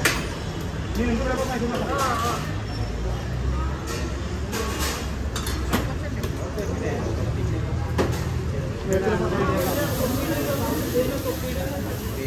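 Metal utensils clink against a hot griddle.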